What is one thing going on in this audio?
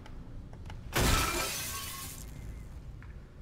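Glass shatters loudly and crashes down.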